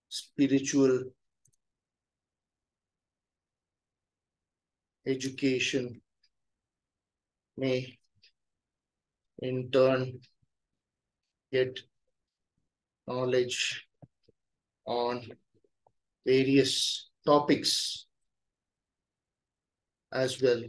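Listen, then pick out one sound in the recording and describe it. An older man speaks calmly into a microphone in short phrases, with pauses between them.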